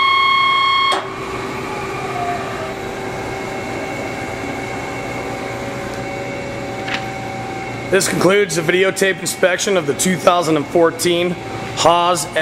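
A machine hums steadily in the background.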